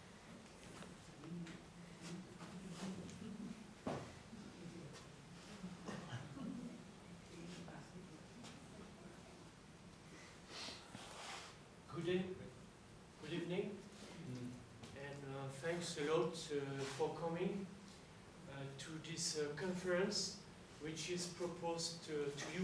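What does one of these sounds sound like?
A man speaks calmly to an audience, heard from a distance.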